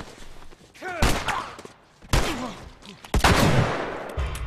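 A pistol fires.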